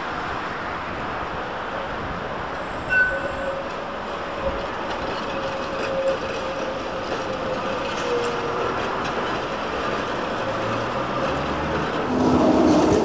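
A tram rolls by on rails.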